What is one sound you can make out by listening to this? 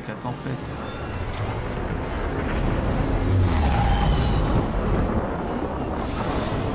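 A spaceship engine rumbles as the ship flies low overhead.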